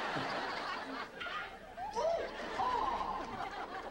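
A woman gasps and exclaims loudly.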